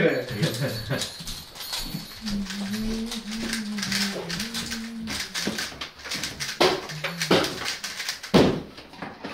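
Plastic puzzle cubes click and rattle as they are turned quickly.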